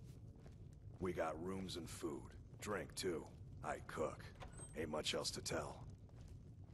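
A man speaks calmly and casually, close by.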